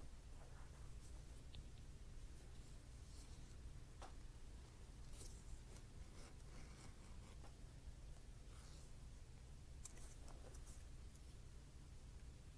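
A hand tool scrapes along the edge of a piece of leather.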